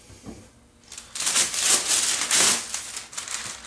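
A plastic bag rustles and crinkles as it is pulled off a board.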